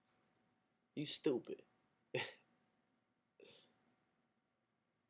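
A young man speaks in short bursts close to a microphone, relaxed and playful.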